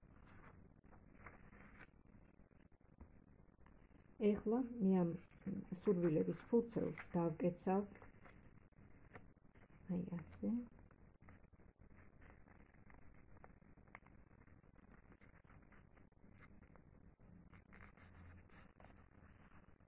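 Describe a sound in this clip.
Paper rustles and crinkles softly as hands fold it.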